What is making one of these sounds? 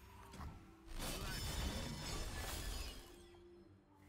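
A magical burst whooshes and booms as a card attack strikes.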